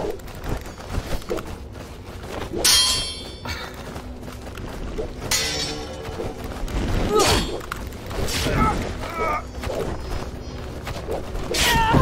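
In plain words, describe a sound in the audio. Swords swing and clash in quick, sharp strikes.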